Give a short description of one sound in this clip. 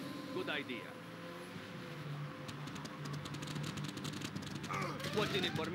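Military vehicles rumble across a wooden bridge.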